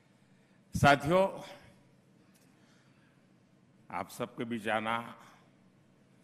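An elderly man speaks slowly and forcefully into a microphone in a large echoing hall.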